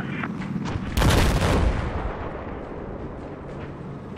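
An explosion booms nearby and rumbles away.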